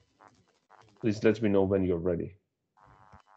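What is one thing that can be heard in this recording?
A man speaks briefly over an online call.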